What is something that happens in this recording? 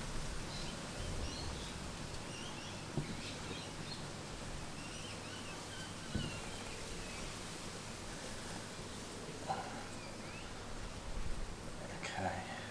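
Rough rock pieces knock and scrape together in hands.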